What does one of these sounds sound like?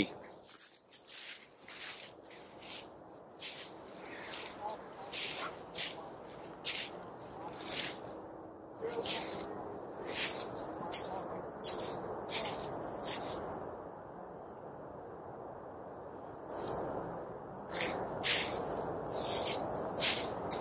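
Footsteps crunch on frosty grass.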